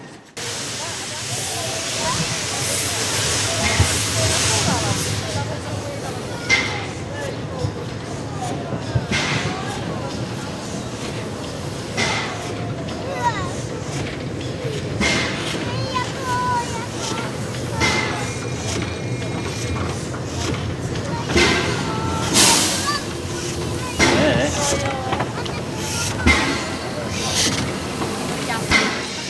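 A steam locomotive rumbles slowly along the track.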